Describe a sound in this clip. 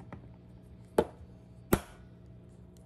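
An egg cracks against a hard edge.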